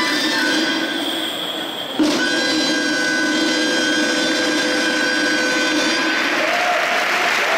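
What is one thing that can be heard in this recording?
A band plays lively music in a large echoing hall.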